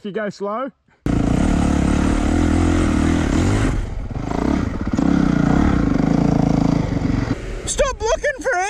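A dirt bike engine roars and revs close by.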